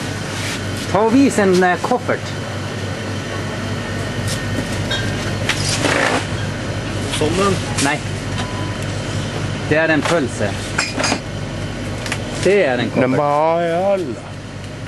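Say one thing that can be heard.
A man speaks casually nearby.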